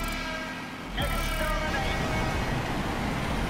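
Motorcycle engines rev loudly as the race starts.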